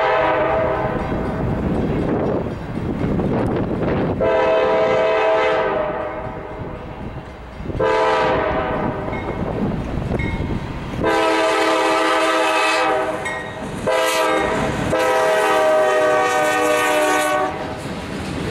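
A locomotive horn blows loud, repeated blasts.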